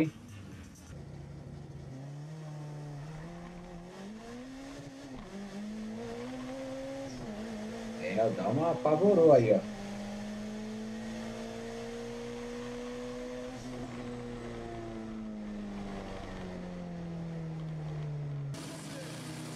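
A car engine roars hard from close by, climbing in pitch between gear changes.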